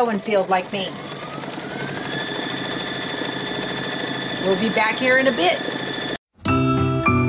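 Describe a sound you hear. An embroidery machine hums and stitches steadily.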